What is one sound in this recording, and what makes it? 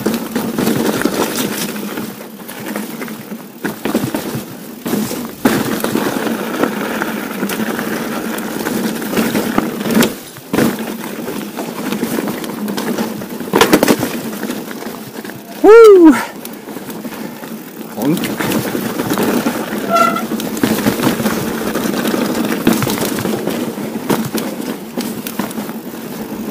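Bike tyres rumble and crunch over loose stones.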